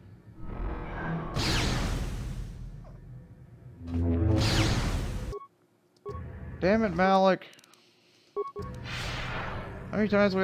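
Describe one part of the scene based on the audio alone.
Lightsaber blades clash with a sharp crackle.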